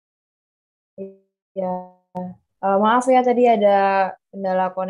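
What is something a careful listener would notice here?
A second young woman talks calmly over an online call.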